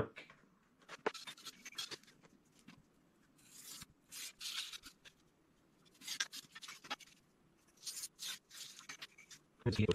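A craft knife scrapes and scores a thin plastic sheet.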